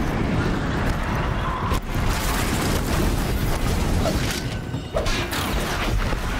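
Fire roars and explosions boom.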